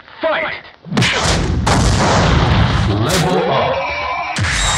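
Blows land with sharp smacks in a fight.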